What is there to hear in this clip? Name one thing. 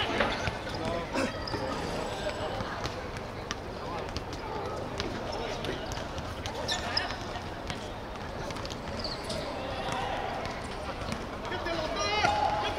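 A football is kicked with dull thuds on an outdoor pitch.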